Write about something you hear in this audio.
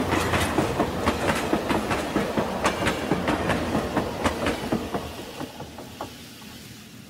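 Model train wheels click rhythmically over rail joints close by and fade away.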